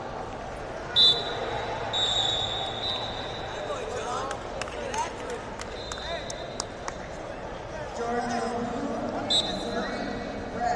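A referee blows short sharp whistle blasts.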